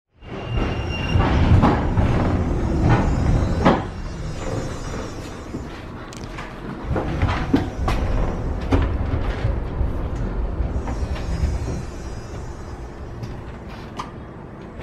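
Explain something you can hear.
A tram rumbles steadily along the tracks.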